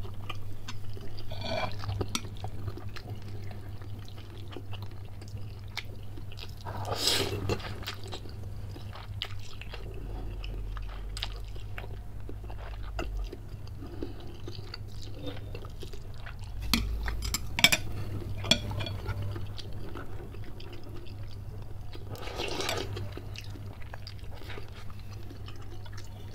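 A man chews noodles wetly and close.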